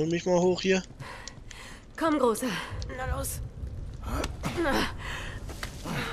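A young woman calls out urgently nearby.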